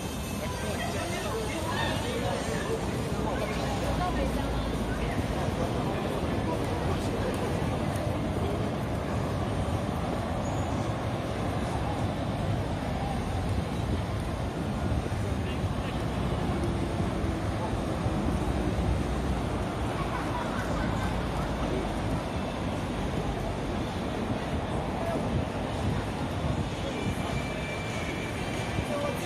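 A busy crowd murmurs with many distant voices outdoors.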